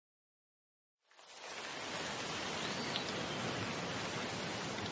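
Steady rain patters on leaves.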